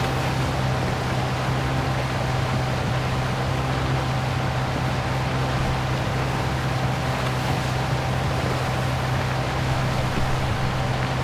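A motorboat engine drones steadily.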